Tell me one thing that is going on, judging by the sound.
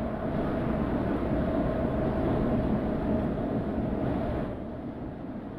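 An electric train rumbles along the track with a steady hum.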